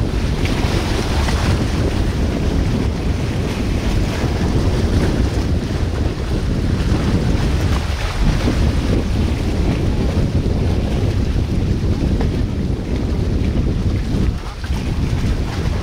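Wind blows into the microphone outdoors.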